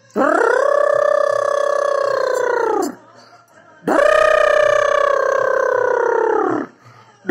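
A toy ride-on motorbike plays a long electronic tone, twice.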